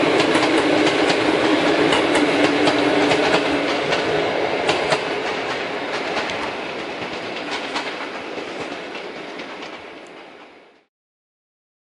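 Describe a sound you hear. A passenger train rolls past nearby, its wheels rumbling and clattering on the rails.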